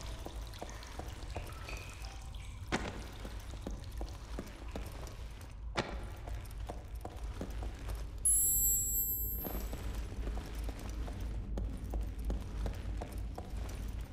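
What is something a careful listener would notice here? Heavy footsteps thud slowly on a stone floor.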